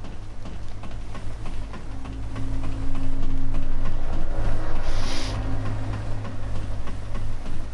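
Hands and feet clank rhythmically on a metal ladder rung by rung.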